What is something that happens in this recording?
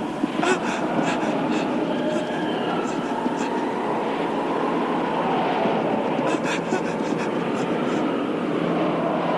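A cartoon creature gasps in fright.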